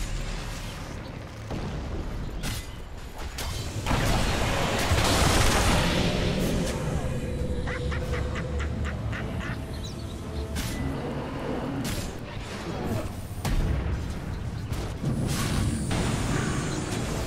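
Magic blasts, clashing hits and whooshing spells sound in a lively fantasy game battle.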